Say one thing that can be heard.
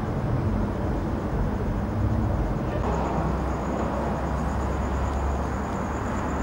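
Car engines rumble low as old cars roll slowly past.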